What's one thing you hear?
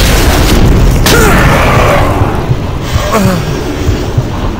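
A monster growls and snarls close by.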